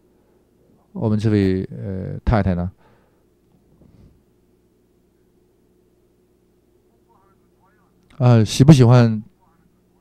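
An older man speaks loudly and expressively in short bursts, close by.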